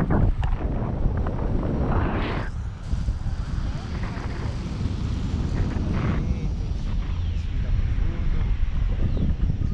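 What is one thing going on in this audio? Wind roars and buffets loudly against a microphone outdoors.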